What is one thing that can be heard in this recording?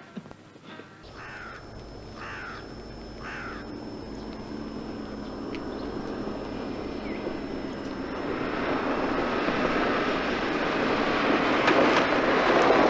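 A truck engine rumbles, growing louder as it approaches.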